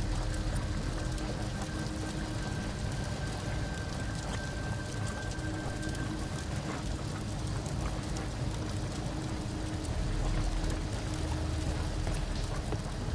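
Footsteps clang on a metal walkway.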